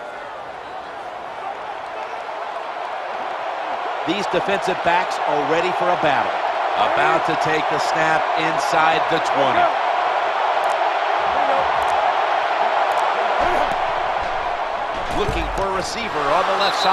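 A stadium crowd roars steadily, growing louder.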